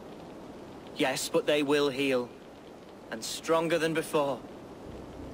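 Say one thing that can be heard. A young man answers calmly and close by.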